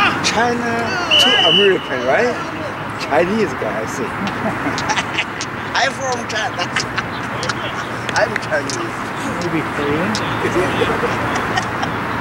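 Players shout to each other across an outdoor field.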